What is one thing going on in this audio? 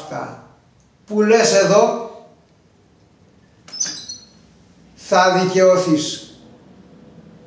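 An elderly man speaks calmly and clearly close by, in short phrases with pauses.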